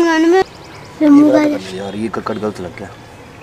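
A young boy speaks briefly up close.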